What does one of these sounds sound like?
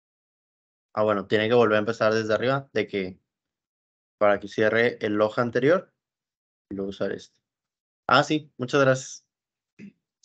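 A man speaks calmly into a microphone, close by, in short bursts.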